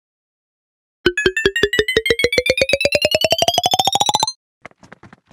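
Rapid electronic game beeps climb steadily in pitch.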